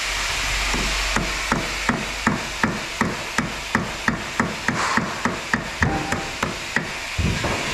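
A ratchet wrench clicks rapidly and steadily.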